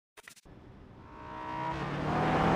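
A car engine revs, rising steadily in pitch and loudness.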